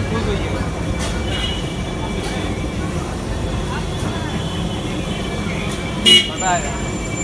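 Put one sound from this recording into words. A metal blade knocks and scrapes against a griddle.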